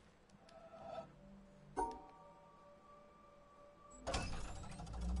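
Soft electronic tones beep and hum briefly.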